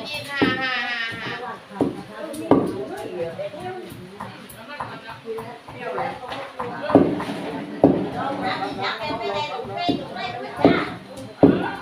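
Several women chat with each other nearby.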